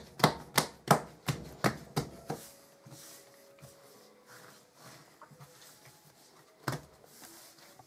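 Hands slap and thump dough against a countertop.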